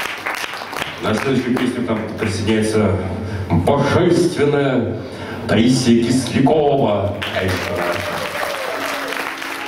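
Acoustic guitars play together in a hall.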